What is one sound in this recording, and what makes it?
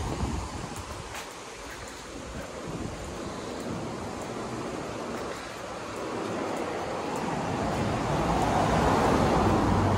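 Footsteps thud and a cane taps on a wooden walkway.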